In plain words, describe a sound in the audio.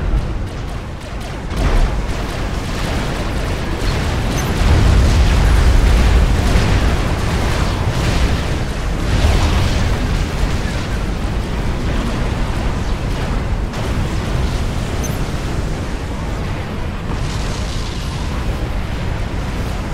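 Explosions and gunfire rumble in a loud battle.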